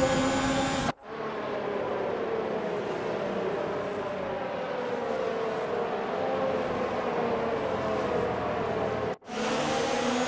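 Several racing cars roar past one after another.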